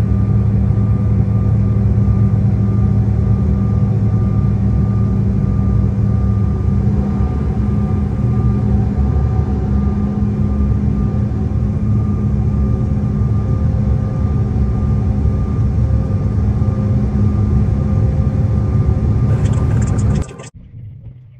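A jet's engines roar steadily from inside the cabin.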